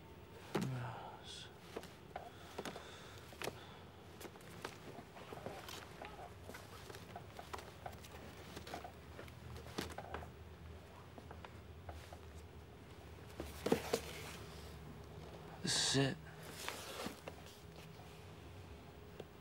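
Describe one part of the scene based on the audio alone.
Record sleeves rustle and knock softly.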